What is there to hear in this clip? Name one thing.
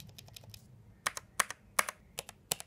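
Keycaps clack loudly as they are pressed and released.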